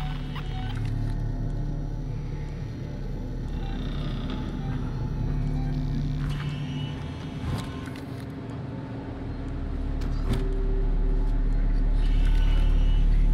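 A low mechanical hum drones steadily and grows louder toward the end.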